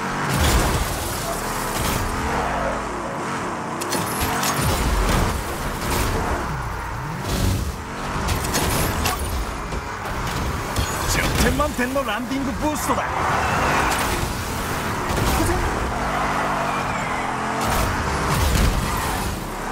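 Cars crash into each other with loud metallic bangs.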